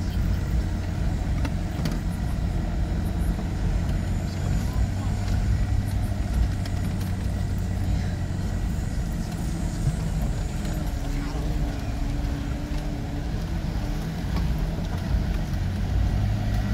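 Tyres crunch and bump over a rough dirt road.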